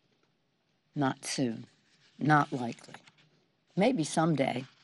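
An elderly woman speaks calmly into a microphone, in short phrases with pauses.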